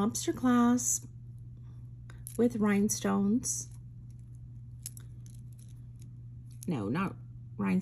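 Small metal chain links and a clasp clink softly.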